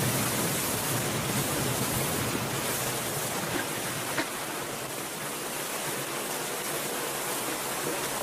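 A man swims, splashing through water.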